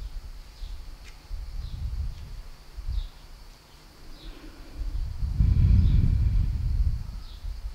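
An elderly man speaks calmly through a headset microphone.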